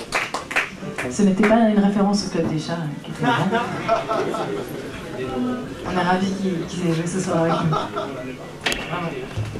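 A young woman talks into a microphone through loudspeakers.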